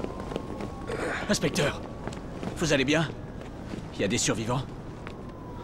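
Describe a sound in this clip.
A man asks a question with concern, up close.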